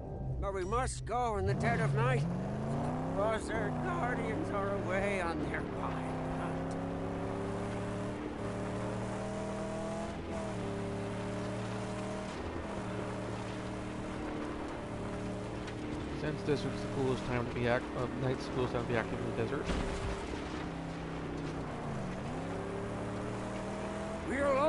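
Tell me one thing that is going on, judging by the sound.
A buggy engine drones steadily, its pitch rising and dipping as the vehicle speeds up and slows down.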